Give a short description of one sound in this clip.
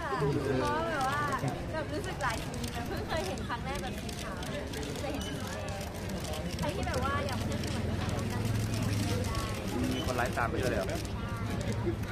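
Several young women laugh together.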